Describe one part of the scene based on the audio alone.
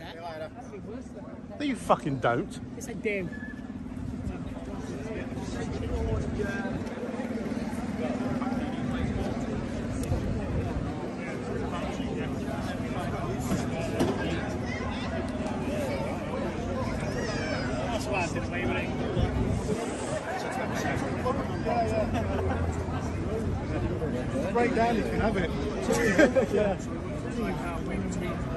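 A crowd of men chatter nearby outdoors.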